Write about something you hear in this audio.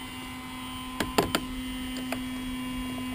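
A screwdriver clicks against a chainsaw's metal parts.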